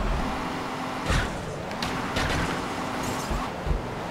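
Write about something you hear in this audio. A car crashes and rolls over with loud thuds and scraping.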